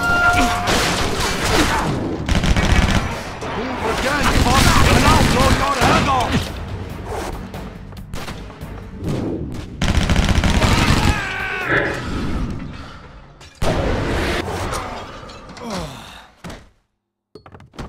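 Gunshots fire rapidly and loudly, one after another.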